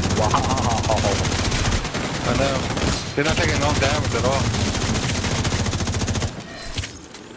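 Rifle fire crackles in rapid bursts.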